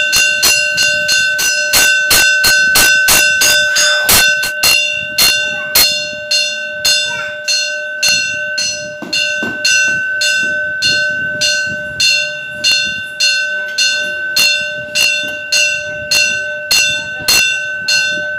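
A brass bell rings in a fast, steady rhythm.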